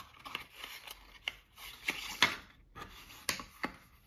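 A cardboard box slides open with a scrape.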